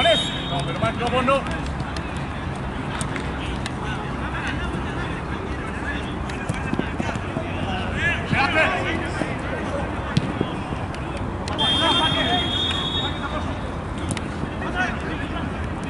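A football is kicked with a dull thud.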